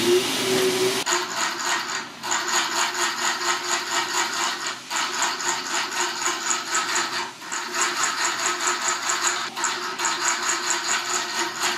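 A sewing machine stitches rapidly in short bursts.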